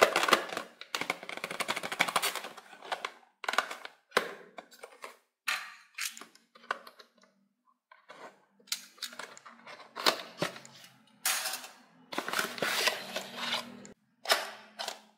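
Cardboard rustles and scrapes as a toy box is handled and opened.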